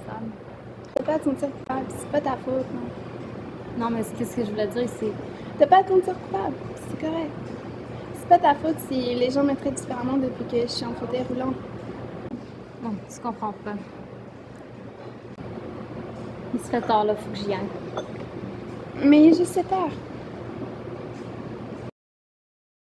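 A young woman talks nearby with animation.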